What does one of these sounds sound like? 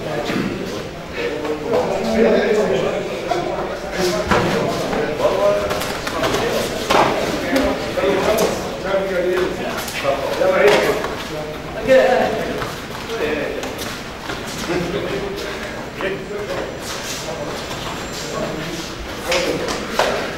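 Men talk and murmur in the background.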